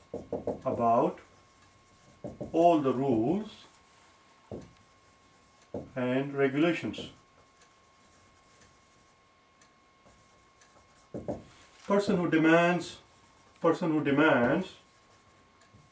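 A man speaks slowly and clearly in drawn-out phrases, close by.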